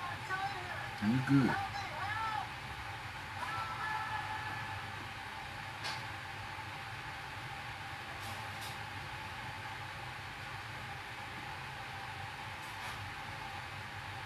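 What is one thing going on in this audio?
A small brush scrubs against a shoe.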